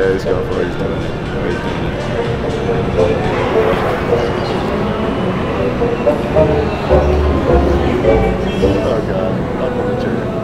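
A crowd murmurs in a large, noisy hall.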